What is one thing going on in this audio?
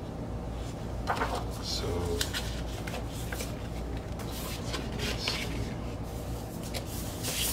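A plastic sleeve rustles and crinkles as it is handled.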